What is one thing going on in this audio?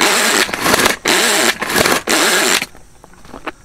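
A hand-pulled food chopper whirs in quick, loud bursts.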